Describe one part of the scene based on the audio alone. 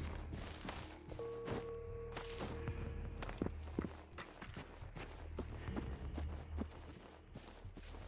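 Footsteps crunch over leaves and undergrowth.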